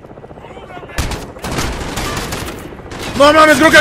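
An explosion booms close by with a deep rumble.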